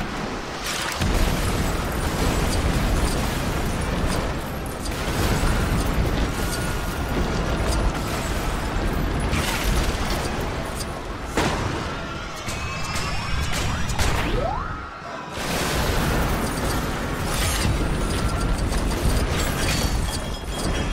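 Blocks clatter and crash as buildings collapse.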